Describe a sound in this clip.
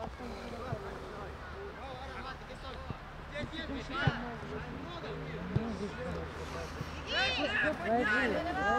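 Young players shout and call out outdoors.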